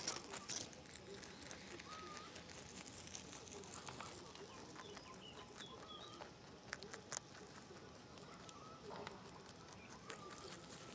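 A rabbit munches and crunches on grass close by.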